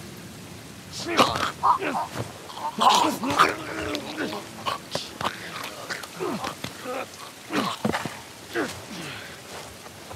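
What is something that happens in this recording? A young man gasps and chokes as he is strangled.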